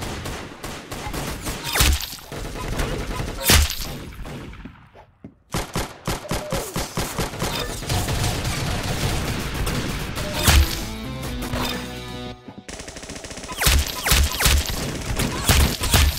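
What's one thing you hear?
Guns fire in rapid bursts of sharp shots.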